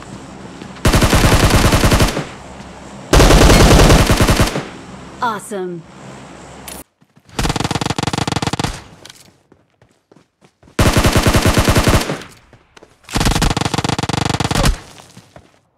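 Rapid automatic gunfire bursts out in loud volleys.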